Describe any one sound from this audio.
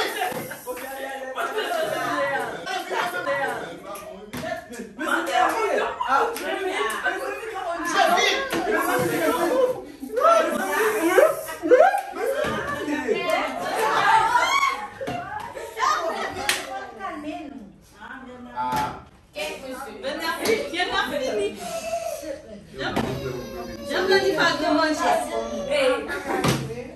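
Several adults and children talk and laugh loudly nearby.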